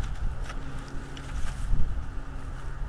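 Large wings flap as a bird lands.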